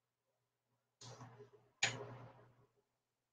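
A spoon clinks against a metal pot.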